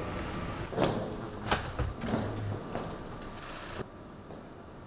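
Boots tap on a hard floor as soldiers march.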